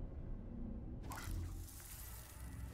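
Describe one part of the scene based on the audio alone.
A magical sparkle crackles and fizzes with a sudden rush.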